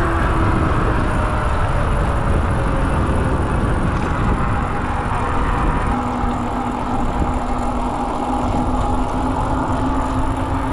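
An electric bike motor hums with a steady whine.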